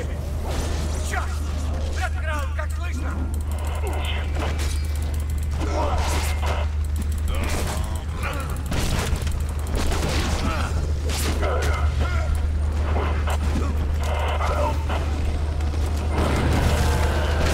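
Explosions burst with sparks.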